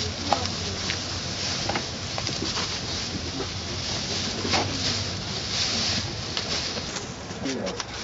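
Plastic bags and tinsel rustle and crinkle close by.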